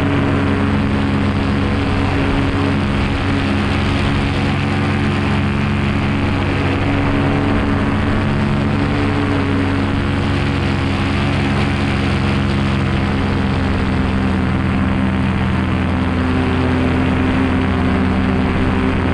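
A paramotor engine drones loudly and steadily close by.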